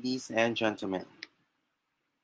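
A young man speaks with animation through an online call.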